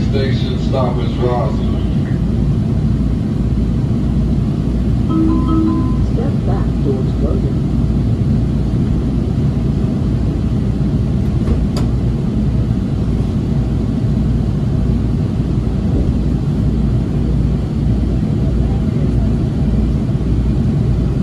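A train's engine hums and rumbles steadily, heard from inside a carriage.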